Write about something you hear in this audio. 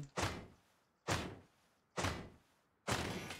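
A hatchet strikes a metal barrel with sharp clangs.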